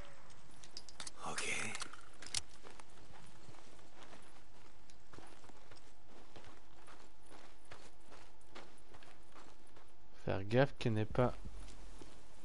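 Footsteps crunch on dry ground at a run.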